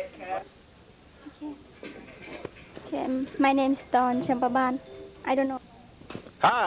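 A teenage girl speaks close by, calmly.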